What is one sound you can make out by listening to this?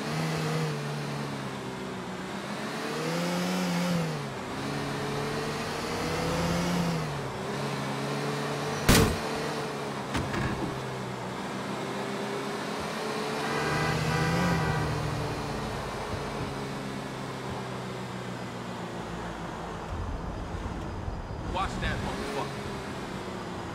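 A car engine hums and revs up and down as the car drives along.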